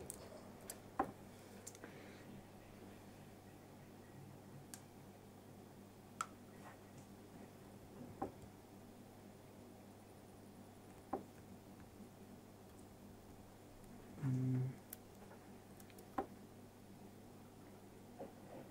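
Keys click sharply now and then on a laptop keyboard.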